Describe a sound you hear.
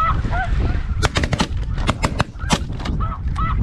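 A shotgun fires several shots in quick succession.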